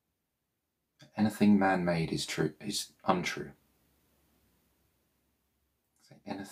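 A man speaks calmly and softly, close to the microphone.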